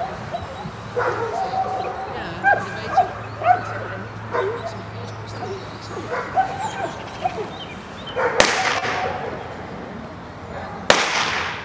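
A woman gives short commands to a dog outdoors.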